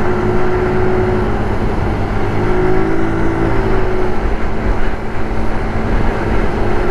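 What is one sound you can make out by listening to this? Wind rushes past outdoors while riding.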